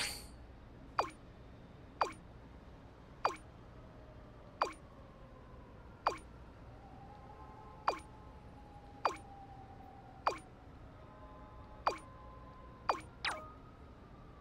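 A short blip sounds each time a new message pops up.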